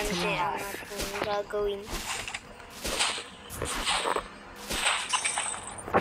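Game sword strikes and spell effects clash and whoosh.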